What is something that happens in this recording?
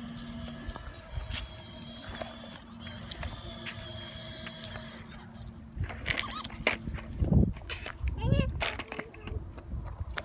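A toy ride-on car's motor whirs steadily.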